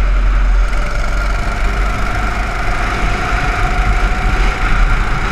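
A go-kart engine buzzes loudly close by.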